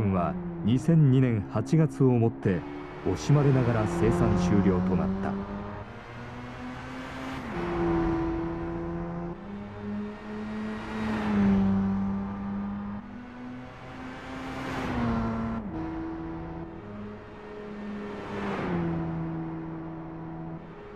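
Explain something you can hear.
A sports car engine revs high and shifts through its gears.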